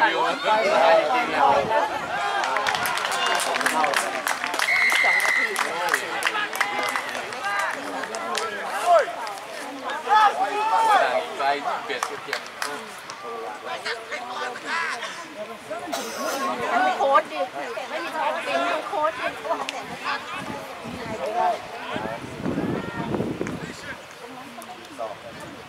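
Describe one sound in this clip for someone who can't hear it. Young people shout and cheer outdoors, some close and some farther off.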